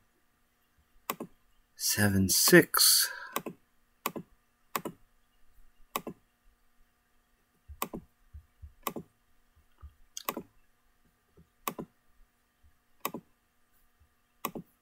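Short card clicks sound as cards snap into place.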